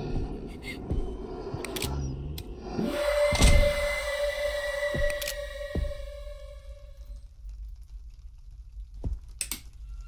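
A jammed door rattles as it is pushed.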